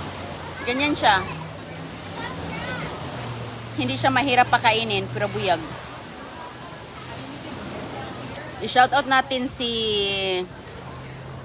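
A young girl talks close by in short bursts.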